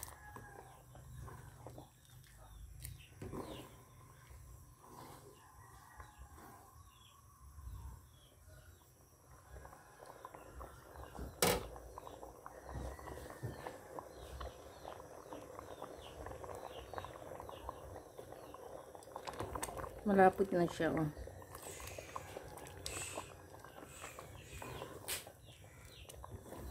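A spatula scrapes and stirs in a metal pot.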